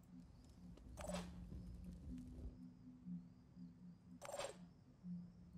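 A soft electronic whoosh sweeps by as a game view shifts.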